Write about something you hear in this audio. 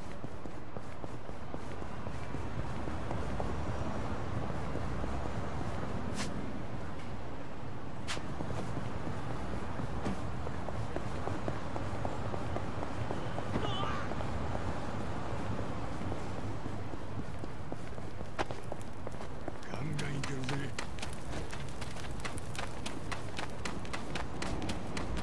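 Quick running footsteps patter on pavement.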